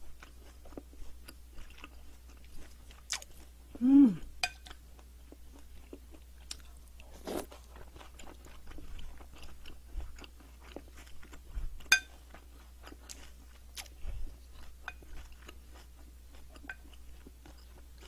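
A spoon scrapes and clinks against a ceramic bowl.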